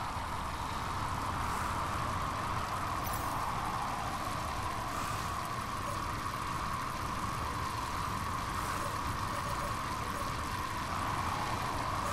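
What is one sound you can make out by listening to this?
Wind rushes steadily past a cyclist riding along a road.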